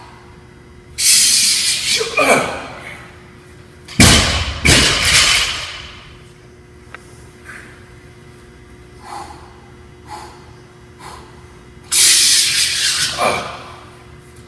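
A man exhales forcefully with a loud grunt.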